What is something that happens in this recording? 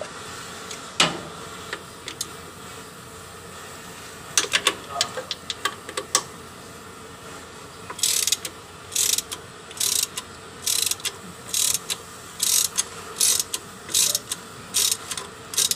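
Metal tools clink and tap against machine parts.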